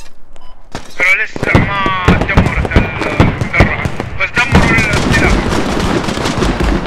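Rifle shots crack in rapid bursts nearby.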